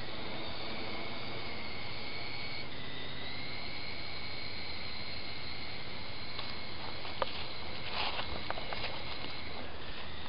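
A small drone hums with a steady high whine overhead.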